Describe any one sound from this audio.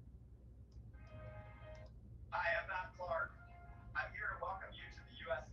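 An elderly man speaks calmly, heard through an online call.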